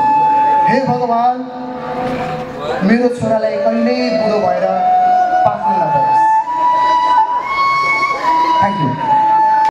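A young man sings into a microphone, heard through loudspeakers, holding long notes.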